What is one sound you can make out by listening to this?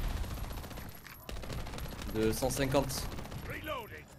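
Gunshots from a video game fire in quick bursts.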